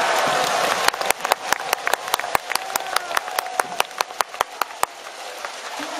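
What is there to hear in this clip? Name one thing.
A crowd claps in a steady rhythm across an open stadium.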